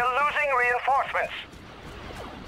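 A small robot beeps and whistles in quick, warbling chirps.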